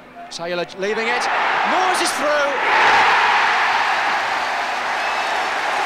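A large crowd roars and cheers loudly outdoors.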